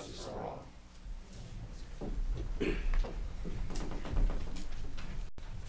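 Chairs creak and scrape as people sit down.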